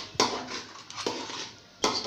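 A spoon scrapes inside a metal jar.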